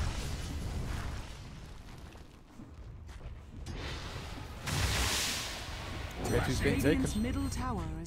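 Magic blasts crackle and whoosh in a fantasy battle.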